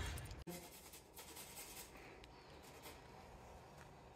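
Cheese scrapes on a metal grater.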